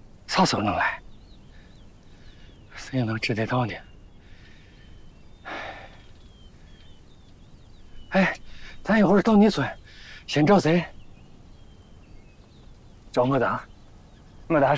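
A young man speaks calmly, close by.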